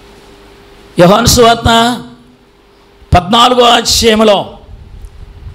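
An elderly man speaks with emphasis into a microphone, heard through a loudspeaker.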